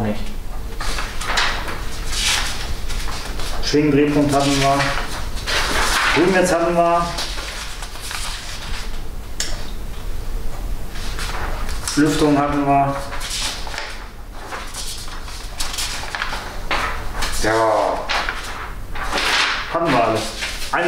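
Sheets of paper rustle and flap.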